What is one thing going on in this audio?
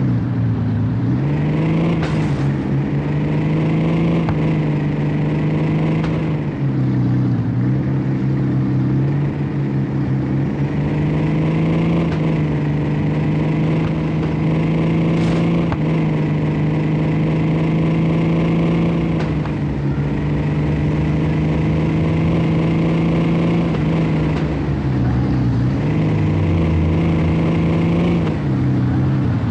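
A car engine roars steadily, revving up and dropping briefly at gear changes.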